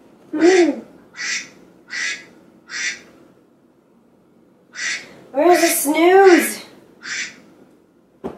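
A young woman groans and whines sleepily nearby.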